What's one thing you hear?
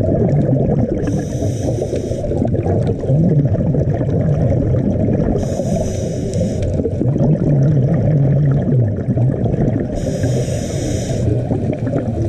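Bubbles from a diver's breathing gear gurgle and hiss in short bursts every few seconds.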